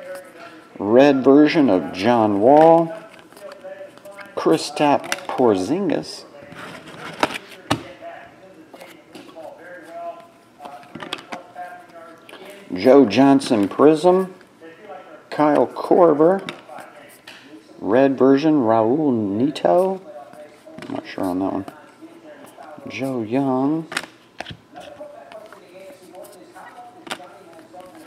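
Trading cards rustle and flick as they are sorted by hand.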